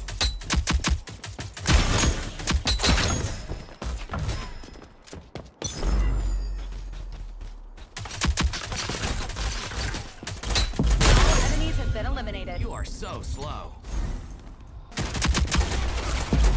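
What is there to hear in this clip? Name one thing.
Rapid gunfire cracks in bursts.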